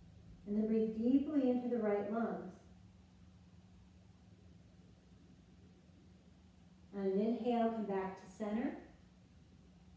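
A woman speaks calmly and softly close by.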